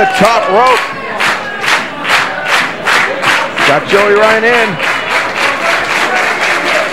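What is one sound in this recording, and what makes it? A crowd claps in a steady rhythm.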